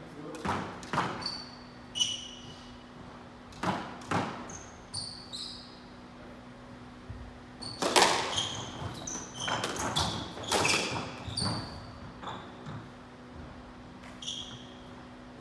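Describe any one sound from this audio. Rubber soles squeak sharply on a wooden floor.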